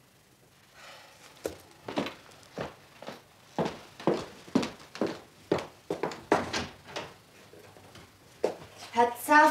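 A woman's heels click across a wooden floor.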